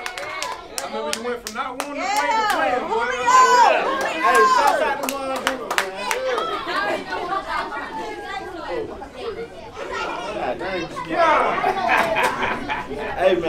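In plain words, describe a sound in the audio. A man speaks into a microphone to a small crowd.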